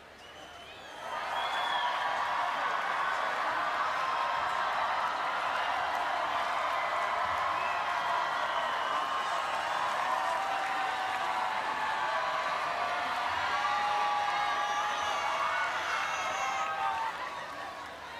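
A huge crowd cheers and shouts outdoors.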